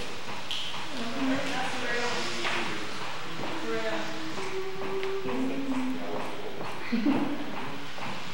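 A young woman sings into a microphone.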